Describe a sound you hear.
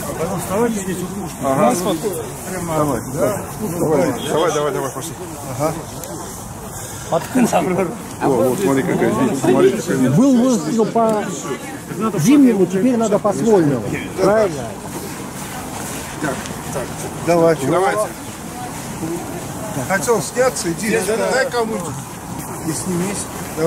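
Several men talk over one another close by, outdoors.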